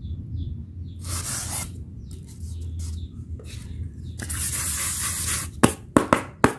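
Styrofoam pieces rustle and squeak as they are handled.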